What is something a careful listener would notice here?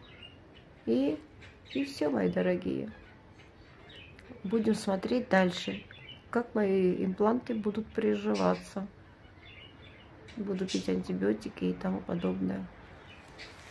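A woman speaks calmly and quietly, close by.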